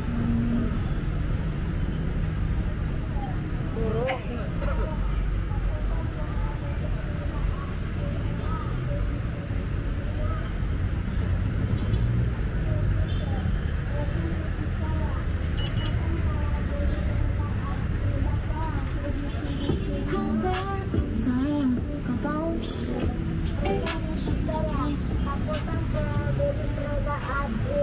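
Traffic hums along a nearby street.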